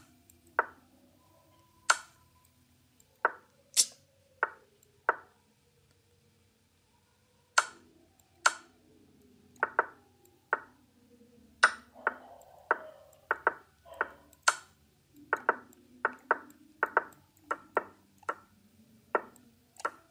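Short wooden clicks of chess moves sound one after another at an uneven pace.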